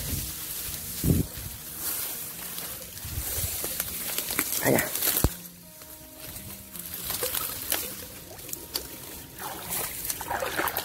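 Dry reeds rustle and crackle as a hand pushes through them.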